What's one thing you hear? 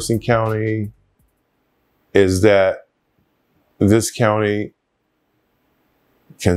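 A middle-aged man speaks calmly and closely into a microphone, in short phrases with pauses.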